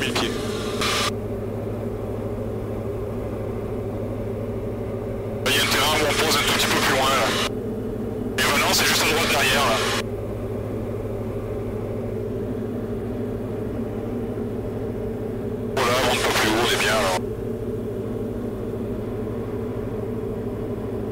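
A small plane's engine drones steadily inside the cabin.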